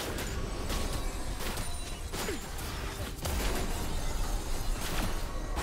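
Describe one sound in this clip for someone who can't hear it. Magic spells zap and crackle in quick bursts.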